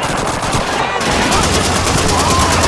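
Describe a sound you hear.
A mounted machine gun fires in rapid automatic bursts.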